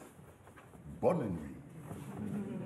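A man's voice rings out loudly in a large hall.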